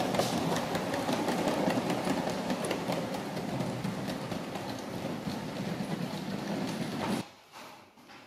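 A small model train rumbles and clatters along its track.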